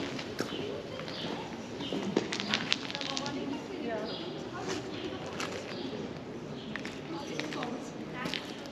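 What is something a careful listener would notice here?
Footsteps tap on a paved street.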